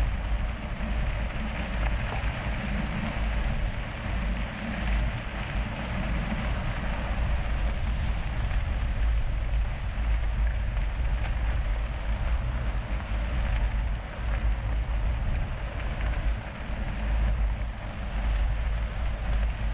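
Bicycle tyres crunch and roll over a gravel track.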